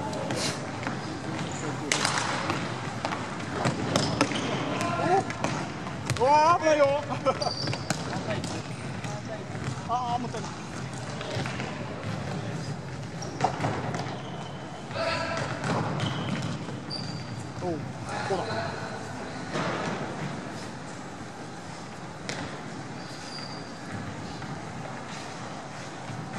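Players' shoes squeak sharply on a hard floor in a large echoing hall.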